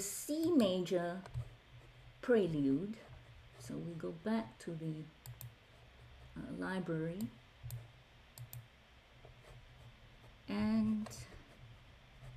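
A woman speaks calmly through an online call, in short phrases.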